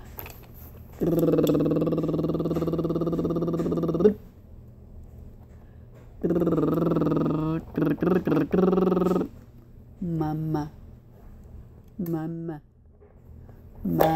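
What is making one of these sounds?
A baby coos and babbles loudly close by.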